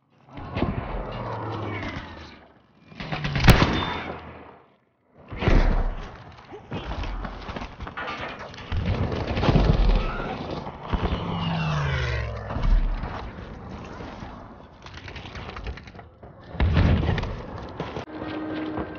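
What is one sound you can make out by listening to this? Footsteps crunch on dirt.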